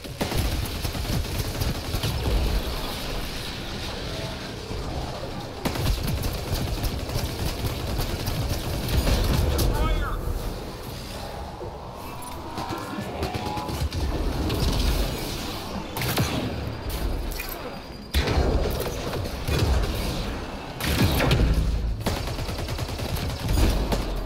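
Explosions rumble loudly.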